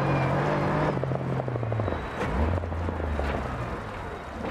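A rally car engine slows and settles to a low idle.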